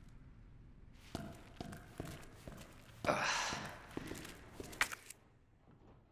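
Footsteps walk on a hard stone floor.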